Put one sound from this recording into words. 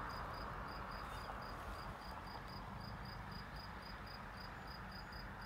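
A train rumbles faintly in the distance as it approaches.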